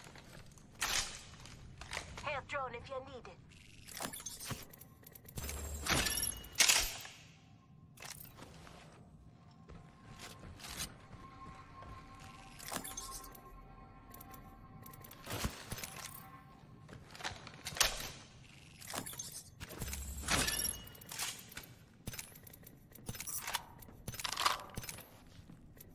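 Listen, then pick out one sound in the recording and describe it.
Short sharp clicks and clatters sound as items are picked up in a video game.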